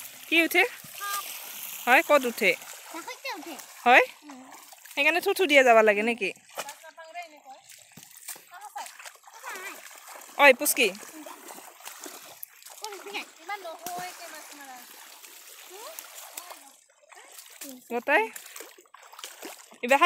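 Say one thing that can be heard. Feet splash through shallow muddy water.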